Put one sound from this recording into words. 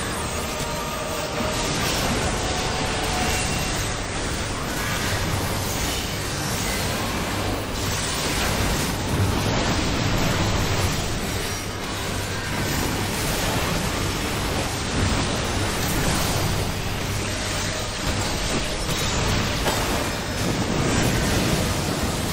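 Loud game battle effects of fiery blasts and strikes roar and crash throughout.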